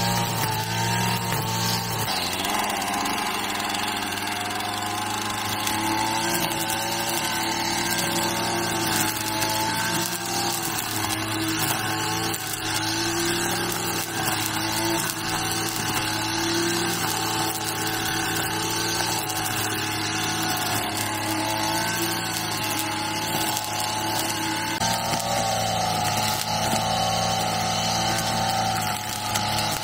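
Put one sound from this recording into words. A string trimmer engine drones steadily and rises and falls as it cuts grass.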